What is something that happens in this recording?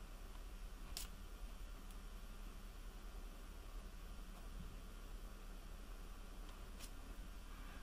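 A small metal tool clicks as it is squeezed.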